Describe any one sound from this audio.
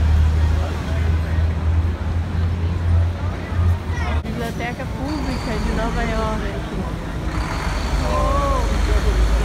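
Traffic rumbles steadily on a busy city street.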